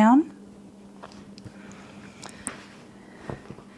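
Hands smooth fabric with a soft rustle.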